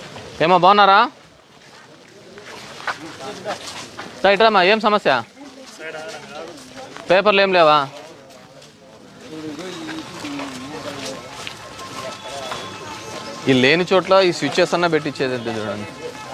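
Men talk and murmur in a group outdoors.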